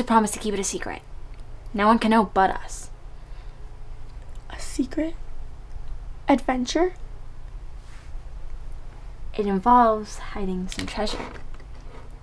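A second girl answers softly and closely.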